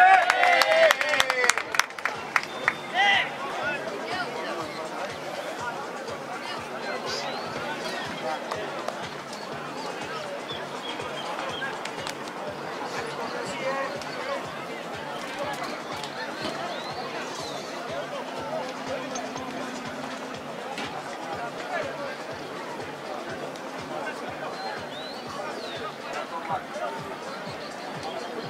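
Players shout and call to each other across an open field.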